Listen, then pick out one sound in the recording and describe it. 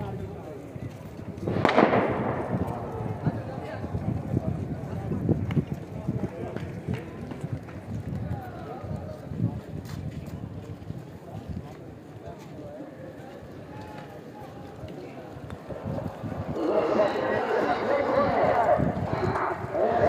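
A large outdoor crowd murmurs and chatters in the distance.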